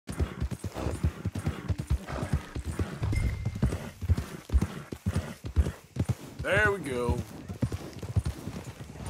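A horse gallops with quick thudding hoofbeats on soft ground.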